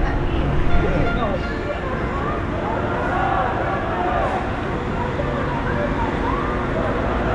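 A large crowd of people chatters and murmurs outdoors.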